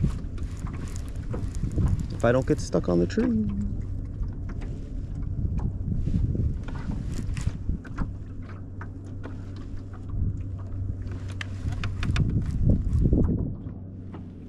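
A small electric boat motor hums steadily.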